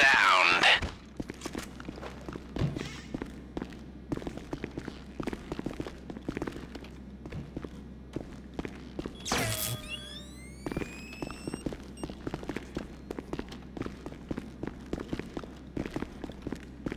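Footsteps thud quickly on stairs.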